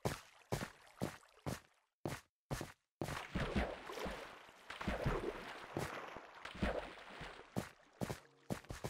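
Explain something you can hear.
Footsteps thud on stone in a quick, even rhythm.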